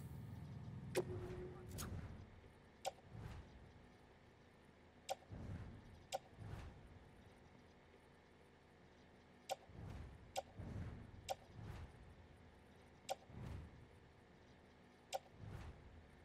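Short electronic menu clicks sound repeatedly.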